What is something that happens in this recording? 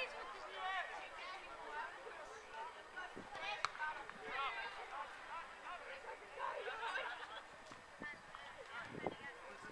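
Young players call out to each other across an outdoor field in the distance.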